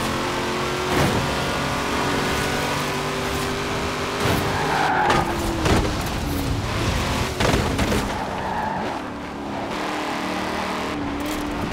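A sports car engine roars at high revs, shifting gears as the car races.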